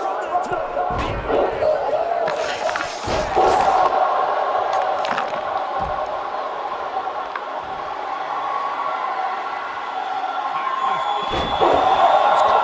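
Heavy thuds boom as bodies slam onto a wrestling mat.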